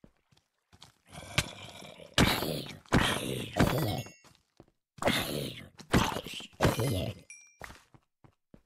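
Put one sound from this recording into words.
A zombie groans and growls nearby.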